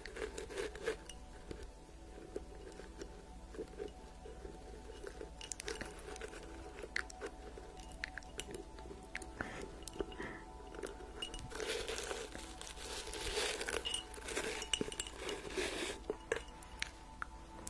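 A plastic container crinkles and taps under fingernails close to a microphone.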